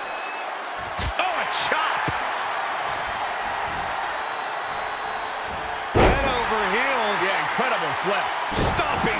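Bodies slam down heavily onto a wrestling ring mat with loud thuds.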